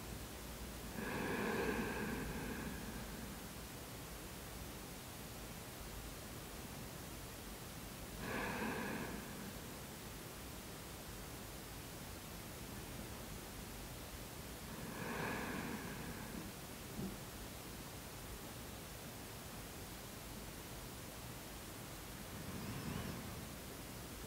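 A woman breathes out slowly and deeply at regular intervals.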